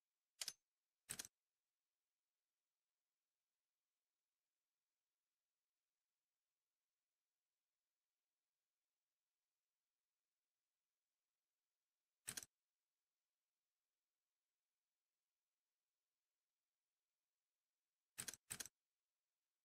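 Short, sharp menu clicks sound now and then as a selection moves.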